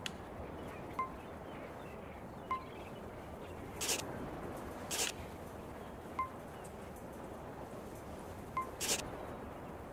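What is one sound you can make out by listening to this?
Short soft chimes ring now and then.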